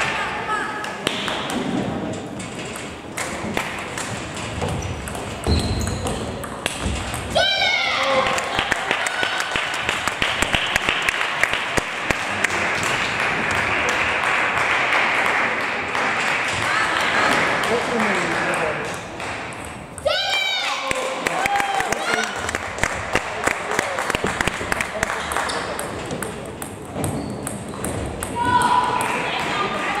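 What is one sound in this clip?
A ping-pong ball clicks back and forth across a table and off paddles.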